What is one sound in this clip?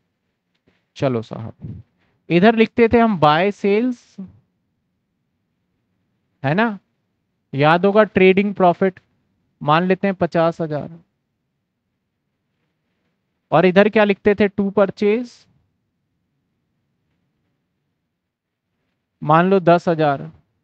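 A man speaks calmly and clearly into a headset microphone, in short bursts.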